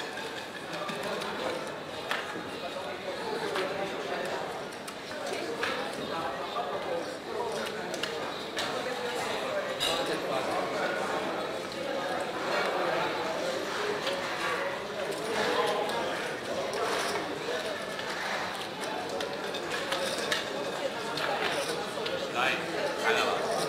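Plastic chips clack together.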